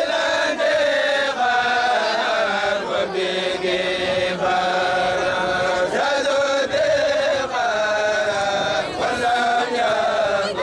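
A group of young men chant together loudly and rhythmically, close by outdoors.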